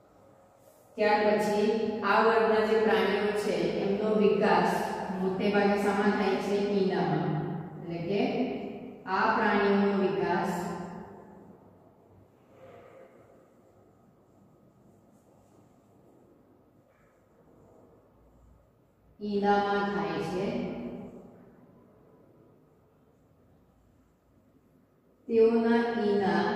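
A young woman speaks clearly and calmly nearby.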